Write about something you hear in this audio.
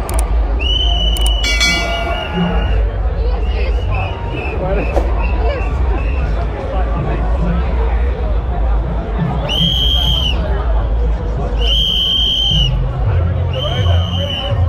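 A large outdoor crowd chatters and shouts all around.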